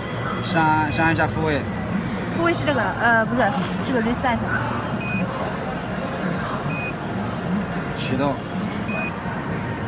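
A touch panel gives short, high beeps as it is tapped.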